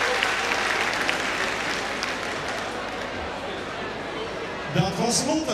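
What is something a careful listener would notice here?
An audience applauds in a large hall, and the applause fades away.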